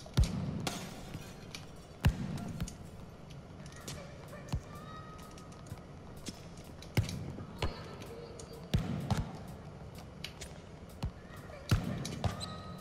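A football is kicked hard with sharp thuds that echo in a large hall.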